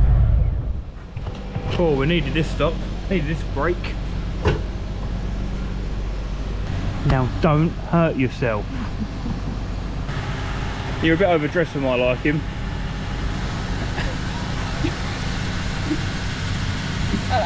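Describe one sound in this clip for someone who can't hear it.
A motorcycle engine idles with a low steady rumble.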